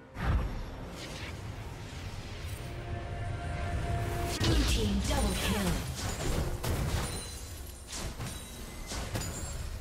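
Spell effects whoosh and crackle in a video game fight.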